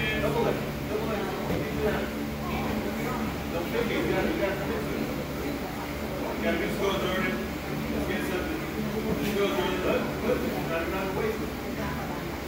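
Young girls chatter and call out playfully nearby.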